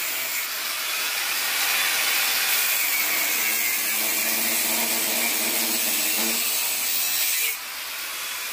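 An angle grinder whirs loudly as it spins up.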